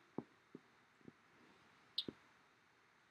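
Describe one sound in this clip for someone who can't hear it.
A spoon taps against a bowl a few times.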